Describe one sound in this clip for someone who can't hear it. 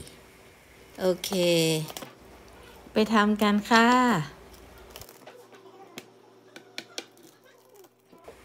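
A blade crunches through a baked pizza crust.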